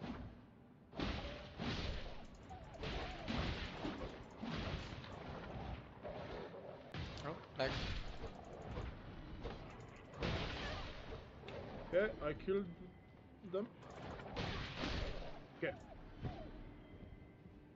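Heavy blows and slashes strike in a fast fight.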